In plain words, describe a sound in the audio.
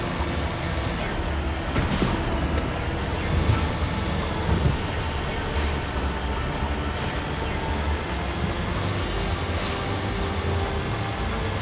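Water splashes and sprays under a vehicle's wheels.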